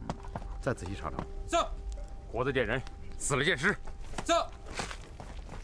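A young man speaks firmly.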